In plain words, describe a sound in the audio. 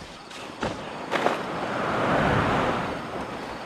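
Wings unfold with a rushing whoosh of air.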